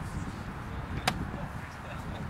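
A plastic bat cracks against a ball.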